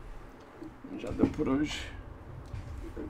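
A young man speaks briefly and quietly close to a microphone.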